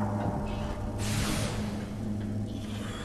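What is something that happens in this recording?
A loud rushing whoosh swells and fades.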